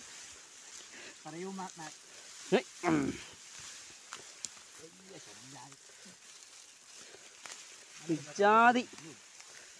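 Tall grass rustles and swishes as people push through it.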